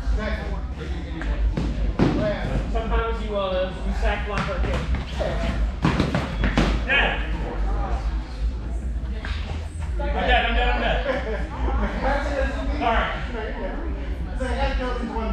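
Several men talk and call out in a large echoing hall.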